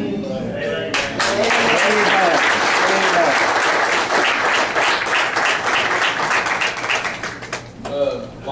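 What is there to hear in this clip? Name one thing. A crowd claps and applauds loudly in a room.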